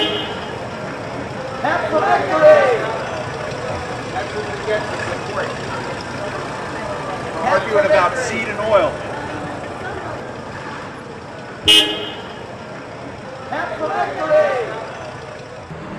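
A car engine runs as a car pulls away and drives off.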